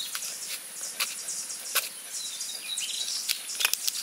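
A knife cuts into a green plant stem.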